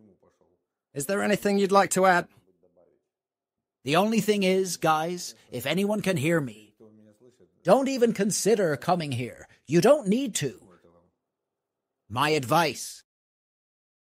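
A man speaks calmly nearby, in short phrases with pauses.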